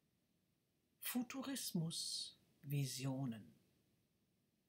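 A middle-aged woman speaks calmly and close by, heard through a computer microphone.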